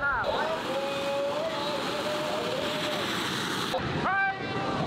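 A bamboo gunpowder rocket roars as it launches.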